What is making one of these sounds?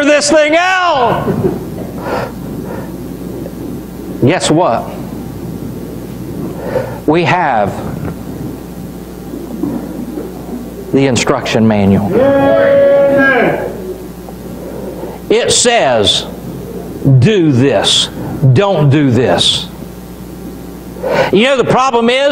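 A man preaches with animation through a microphone in an echoing hall.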